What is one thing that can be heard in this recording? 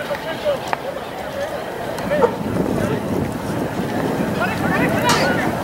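A crowd of spectators cheers and shouts in the distance outdoors.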